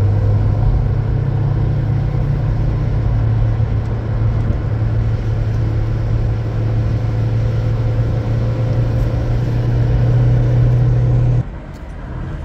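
A car engine drones, heard from inside the car.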